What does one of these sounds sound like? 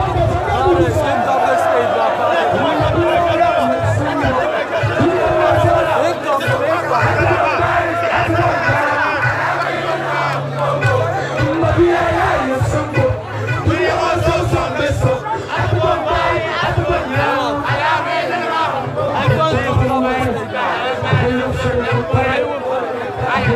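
A young man vocalizes into a handheld microphone over a loudspeaker system outdoors.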